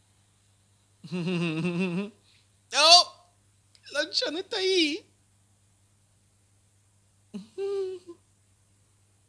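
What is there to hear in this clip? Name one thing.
A young man speaks close to a microphone in short, animated phrases, his voice rising and falling.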